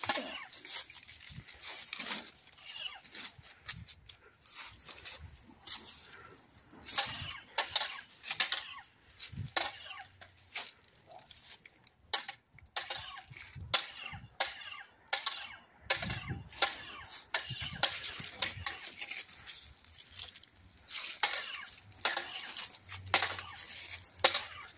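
Toy swords clash and clack together repeatedly.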